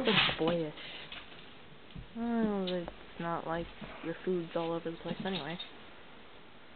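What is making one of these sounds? A dog whines and yowls in short bursts nearby.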